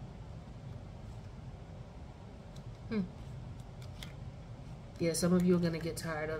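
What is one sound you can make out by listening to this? Playing cards rustle and flick softly as they are shuffled.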